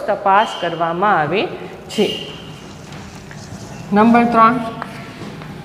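A woman speaks clearly, close by in a room.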